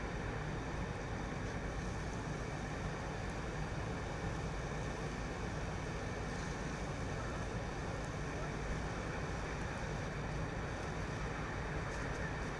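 A fire hose sprays water onto a burning car with a steady rushing hiss.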